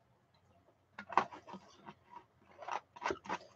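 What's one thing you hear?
A plastic bottle cap twists open with crackling clicks.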